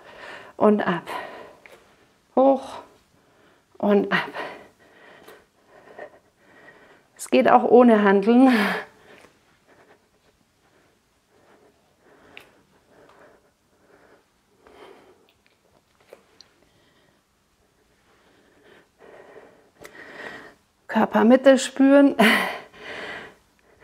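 A middle-aged woman speaks calmly, giving instructions.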